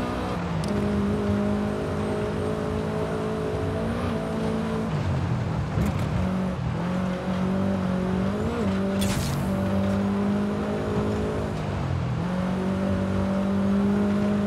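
Tyres crunch and rumble over a rough gravel track.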